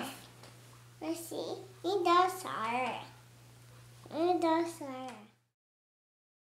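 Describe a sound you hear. A young child speaks in a high, sing-song voice close by.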